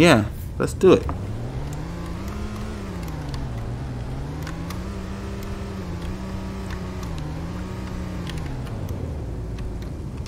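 A car engine hums, its pitch rising and falling as it drives.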